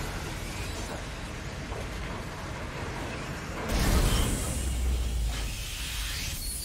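Heavy boots step on a metal floor.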